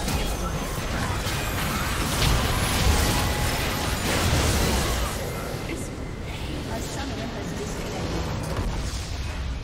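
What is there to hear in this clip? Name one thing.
Magic blasts and clashing effects crackle loudly in a game battle.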